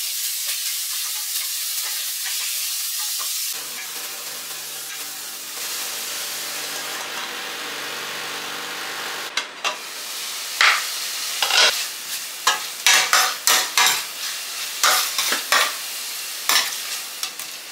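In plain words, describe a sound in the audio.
Meat sizzles and crackles in hot fat.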